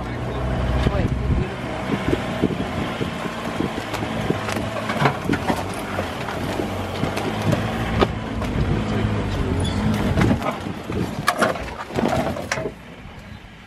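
A vehicle engine rumbles steadily close by, then goes quiet.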